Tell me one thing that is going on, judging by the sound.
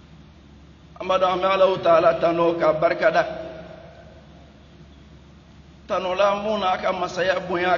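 A middle-aged man preaches with animation into a microphone, his voice carried through a loudspeaker.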